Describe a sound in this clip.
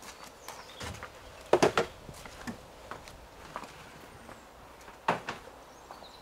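Plastic crates clatter as they are set down.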